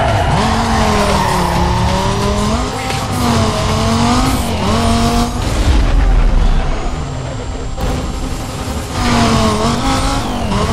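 A sports car engine roars loudly, its pitch rising and falling as it shifts gears.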